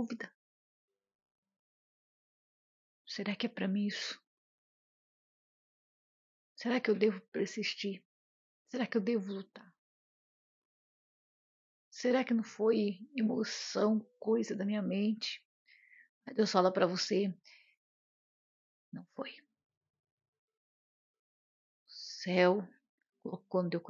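A middle-aged woman talks calmly and warmly, close to a microphone, with pauses.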